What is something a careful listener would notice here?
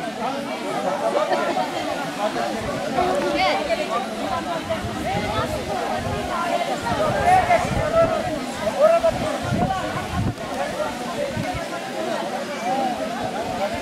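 A crowd of men and women chatter outdoors, close by.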